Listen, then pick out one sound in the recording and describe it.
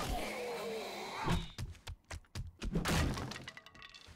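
A spiked club strikes flesh with heavy thuds.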